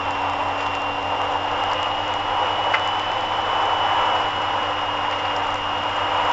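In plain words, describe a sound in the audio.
A car engine hums steadily at speed.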